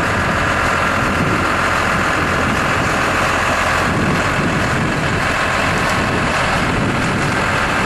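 A tractor engine idles close by.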